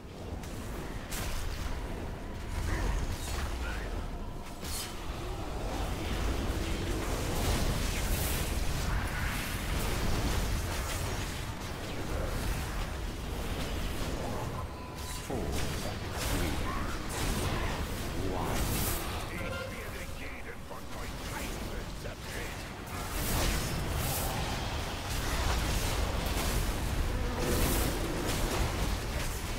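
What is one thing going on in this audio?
Magic spells and weapon hits crash and whoosh in a video game battle.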